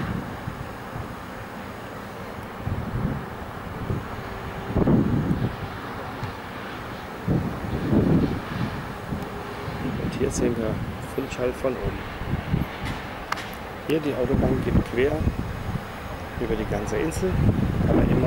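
Wind gusts and buffets outdoors.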